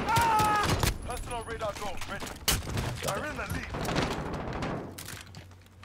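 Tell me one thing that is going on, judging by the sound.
Gunshots fire in quick bursts and ring out sharply.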